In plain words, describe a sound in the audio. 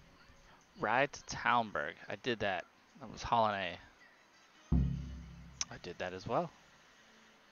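Bright electronic notification tones sweep up and down in quick bursts.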